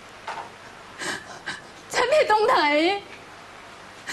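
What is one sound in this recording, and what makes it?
A woman speaks tearfully and pleadingly, close by.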